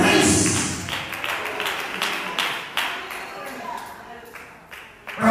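A man preaches with animation into a microphone, echoing through a large hall.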